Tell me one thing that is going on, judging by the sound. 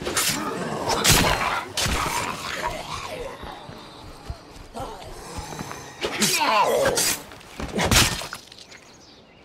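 Heavy blows thud into a body.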